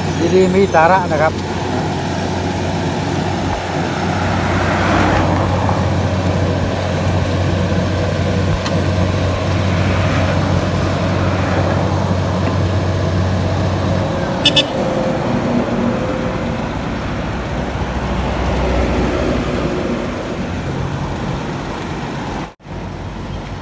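A paving machine's diesel engine rumbles steadily close by.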